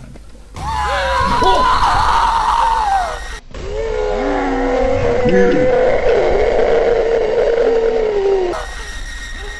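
A creature screeches and groans loudly.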